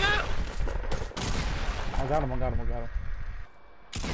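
A gun fires several shots.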